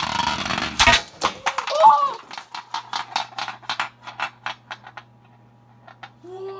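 A spinning top rattles and clatters as it slows and tips over.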